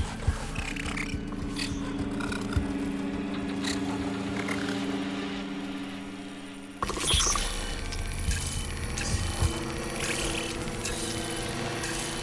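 A machine creature clanks and whirs as it walks.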